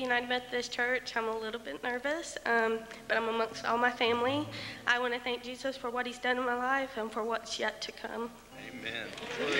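A woman speaks into a microphone, close by.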